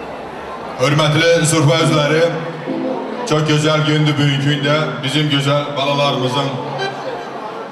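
A man speaks loudly through a microphone and loudspeakers, in a large echoing hall.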